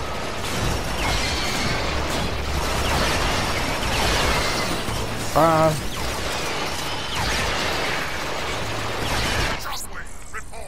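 Energy guns fire in rapid, crackling bursts with loud blasts.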